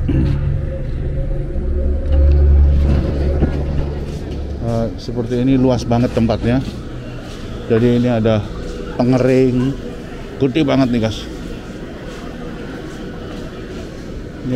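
Ceiling fans and machines hum steadily.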